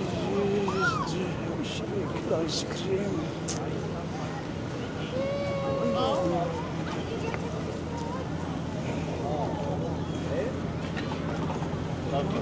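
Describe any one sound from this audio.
A crowd of men, women and children chatters outdoors.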